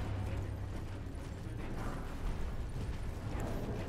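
Hooves of a galloping horse thud steadily.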